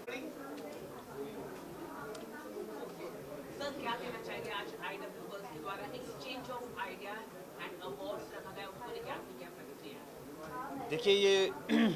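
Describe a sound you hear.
A young man speaks calmly into microphones close by.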